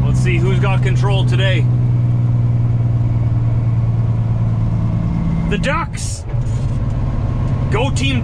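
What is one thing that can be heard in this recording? A truck's diesel engine drones steadily from inside the cab.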